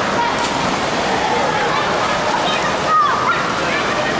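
Water splashes as a girl jumps into a pool.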